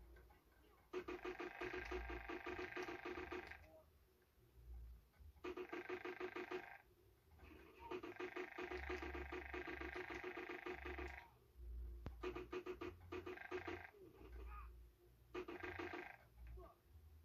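Rapid bursts of video game gunfire rattle through a television speaker.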